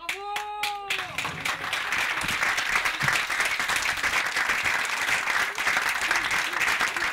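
A large crowd applauds loudly and steadily.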